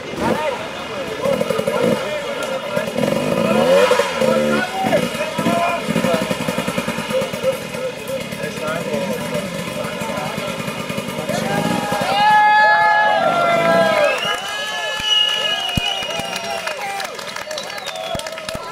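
A crowd of men shouts and cheers outdoors nearby.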